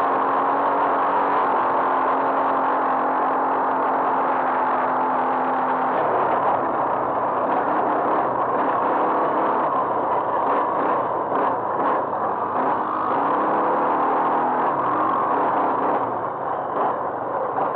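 Tyres crunch and rumble over a bumpy dirt track.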